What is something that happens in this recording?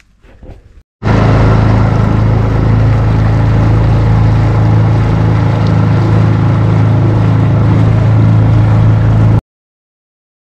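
A boat motor drones steadily up close.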